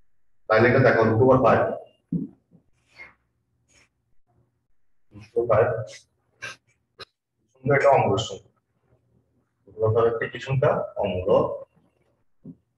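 A man speaks calmly and clearly, close to a microphone, pausing often.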